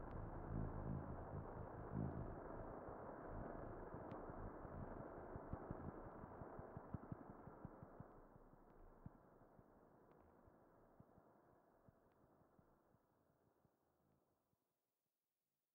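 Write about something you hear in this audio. A grand piano plays and its sound slowly fades away.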